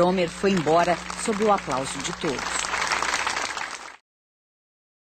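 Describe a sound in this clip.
A crowd claps hands.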